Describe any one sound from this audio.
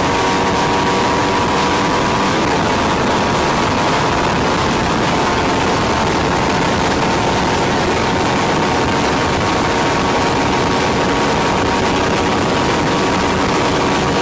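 An underbone motorcycle engine runs at full throttle.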